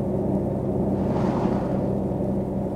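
A car passes by with a brief whoosh.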